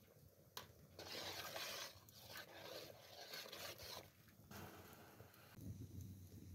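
Food splashes as it is dropped into boiling water.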